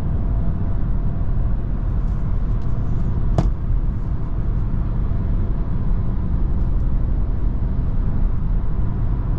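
Tyres rumble low on the road.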